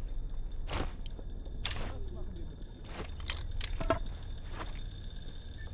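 Quick clicks and whooshes sound as a weapon is chosen.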